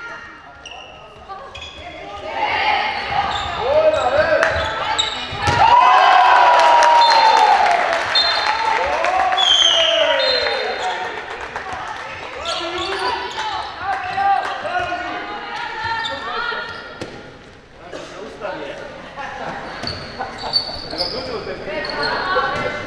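Young women shout and cheer loudly in an echoing hall.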